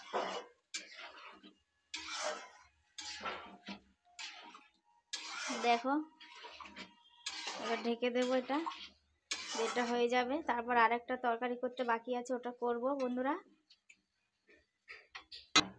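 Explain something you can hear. A spatula scrapes around a pan.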